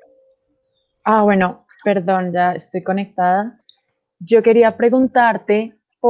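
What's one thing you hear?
A young woman speaks calmly over an online call.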